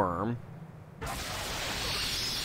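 A spell crackles and whooshes as it is cast.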